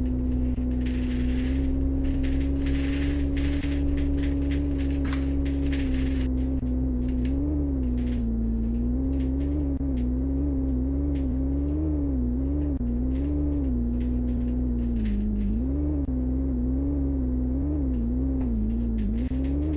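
A bus engine hums steadily, its pitch rising and falling as the bus drives.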